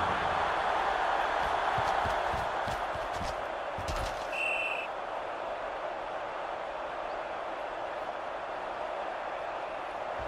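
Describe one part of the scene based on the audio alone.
A large crowd cheers steadily in a stadium.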